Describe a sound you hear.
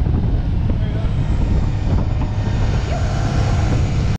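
A man talks close by at times, half drowned by the wind.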